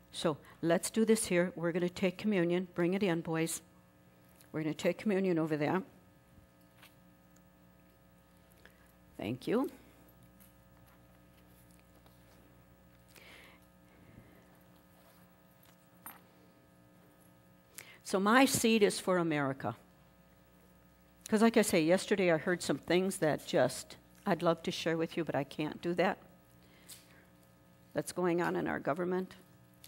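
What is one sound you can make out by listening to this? An elderly woman speaks with animation through a microphone in an echoing room.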